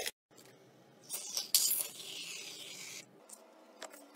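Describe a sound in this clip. A can of foam sprays with a hiss.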